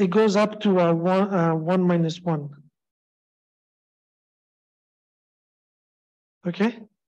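A man speaks calmly through a microphone, as if on an online call.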